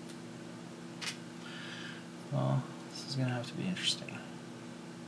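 Fingers fiddle with small wires and parts, making faint clicks.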